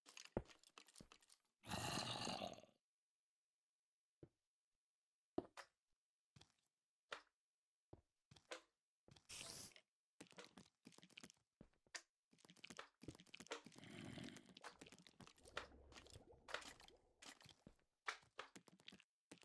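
Footsteps crunch on stone in quick, short steps.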